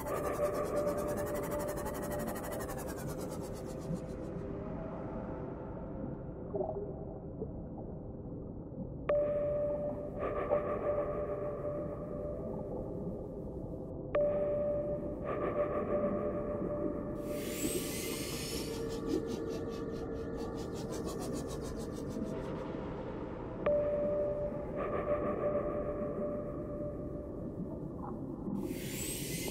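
A small submarine's motor hums steadily underwater.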